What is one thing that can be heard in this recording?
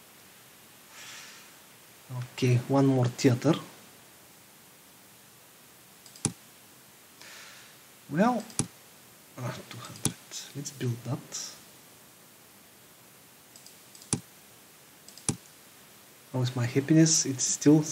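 Short clicks sound as a game's menu windows open and close.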